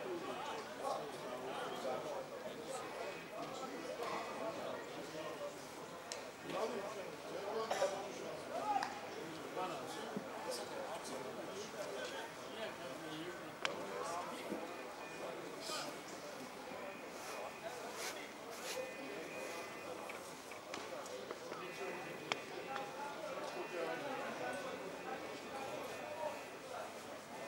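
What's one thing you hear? Men talk and call out on an open outdoor pitch.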